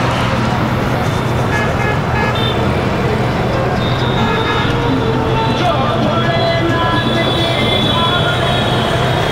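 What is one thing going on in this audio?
Motorcycle engines hum and putter nearby in busy traffic.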